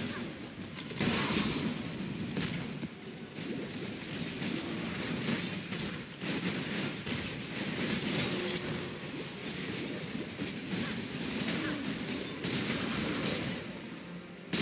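Spells and fire blasts crackle and boom in quick bursts.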